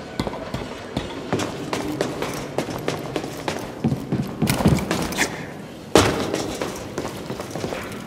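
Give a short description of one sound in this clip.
Footsteps clang on metal walkways.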